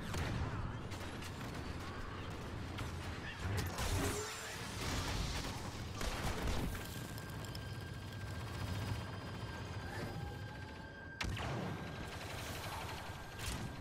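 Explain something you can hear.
Laser swords hum and swish through the air.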